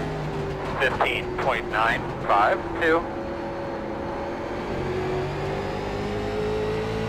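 A race car engine drones steadily.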